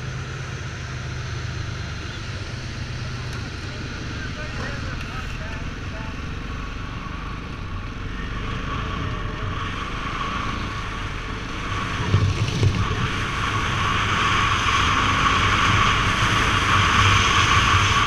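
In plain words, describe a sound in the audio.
Wind rushes past loudly, growing stronger as the motorcycle speeds up.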